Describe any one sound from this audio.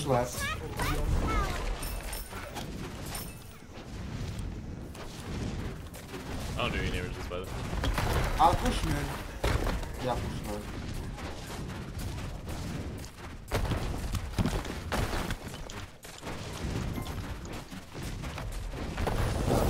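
Video game spell effects whoosh and blast.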